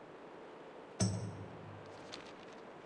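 A deep magical whoosh sounds.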